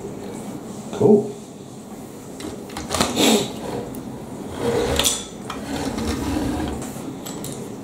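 A plastic toy model bumps and scrapes on a wooden table.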